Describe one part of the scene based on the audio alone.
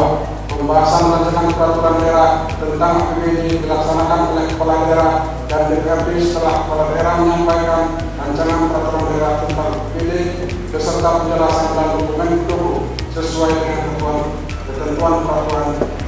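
A man reads out steadily through a microphone.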